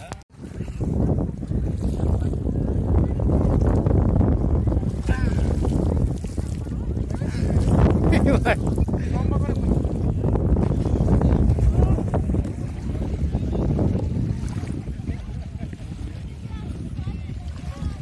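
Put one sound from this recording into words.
Water splashes as a man wades through shallow sea.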